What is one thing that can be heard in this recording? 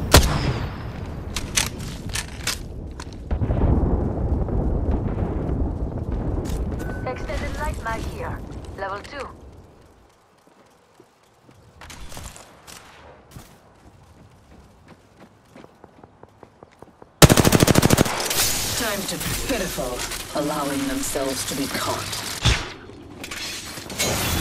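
Quick footsteps patter as a game character runs.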